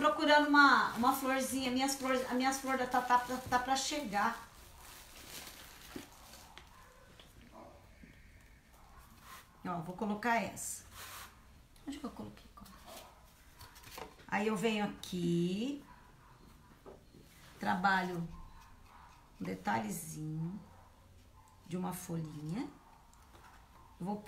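A woman speaks calmly close by, in short phrases with pauses.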